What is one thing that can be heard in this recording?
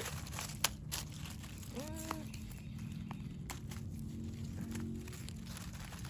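A knife cuts through a mushroom stem.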